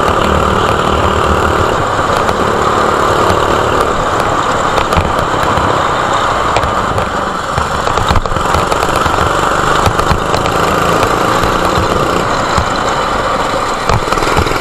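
A go-kart engine revs loudly and steadily up close.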